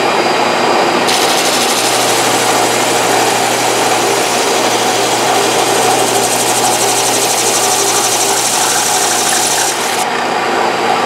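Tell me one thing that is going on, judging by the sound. Wood grinds against a sanding drum with a harsh hiss.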